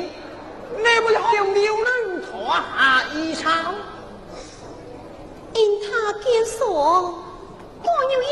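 A woman sings in a high, stylised opera voice.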